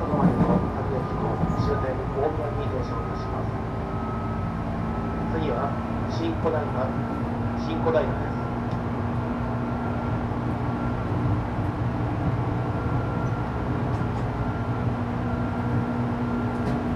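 A stopped electric train hums steadily.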